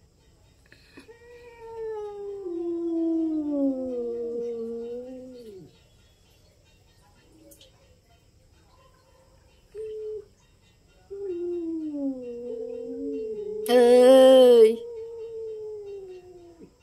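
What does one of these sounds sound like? A cat yowls loudly in long, drawn-out wails that rise and fall.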